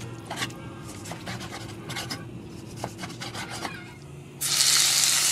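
A knife taps against a wooden board while slicing meat.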